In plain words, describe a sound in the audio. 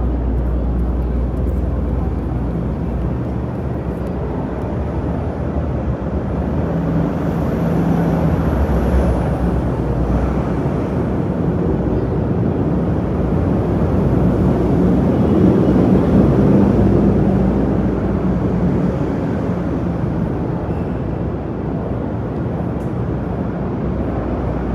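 Steady city traffic hums and rumbles outdoors.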